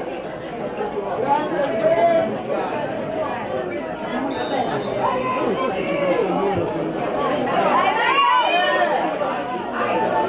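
Young boys shout and call to each other from a distance across an outdoor football pitch.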